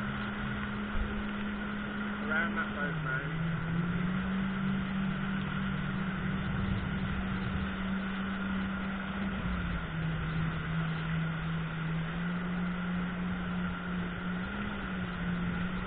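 Water sprays and splashes behind a speeding jet ski.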